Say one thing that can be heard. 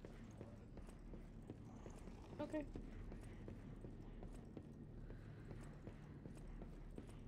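Footsteps thud steadily on wooden floors and stairs.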